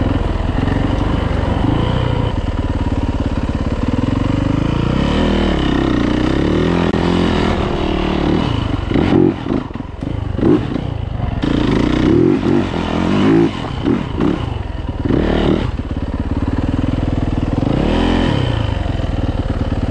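A dirt bike engine buzzes close by, revving up and down.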